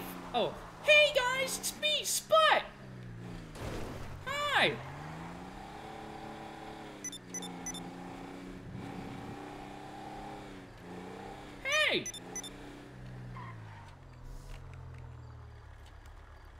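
A car engine revs and hums, then quietens as the car slows to a stop.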